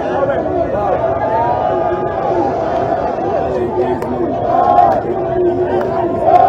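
A large crowd sings and cheers loudly outdoors.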